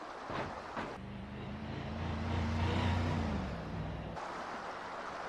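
A car engine hums as it drives along a road.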